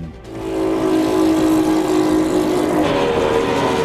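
A powerboat engine roars at high speed.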